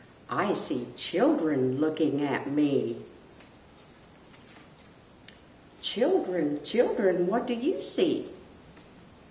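A middle-aged woman reads aloud expressively, close to a microphone.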